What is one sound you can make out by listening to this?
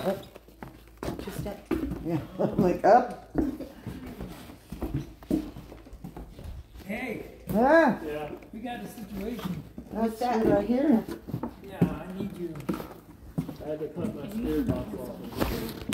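Footsteps thud and creak on wooden boards.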